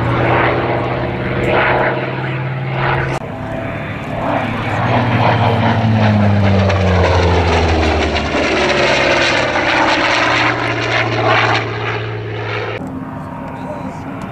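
A propeller aircraft engine drones overhead, rising and falling in pitch as the plane passes.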